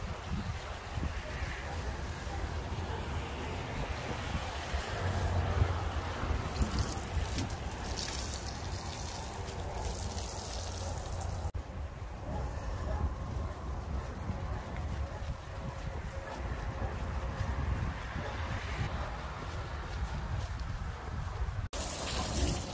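A wet sponge squelches and rubs over a car's body.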